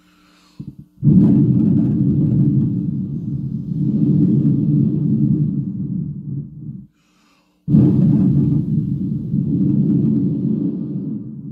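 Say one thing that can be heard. An older man hums loudly into a microphone, with a muffled, distorted sound.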